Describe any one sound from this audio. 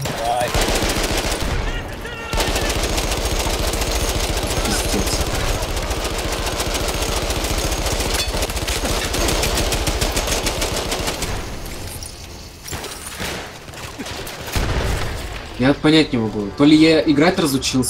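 A machine gun fires rapid bursts with loud, echoing shots.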